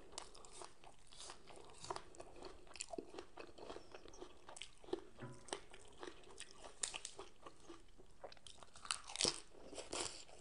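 A woman chews and slurps food loudly close to a microphone.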